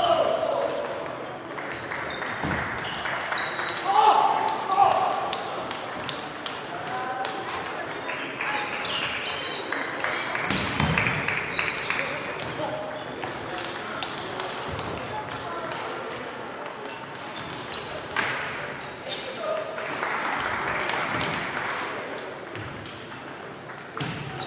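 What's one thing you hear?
Table tennis balls click and bounce on tables throughout a large echoing hall.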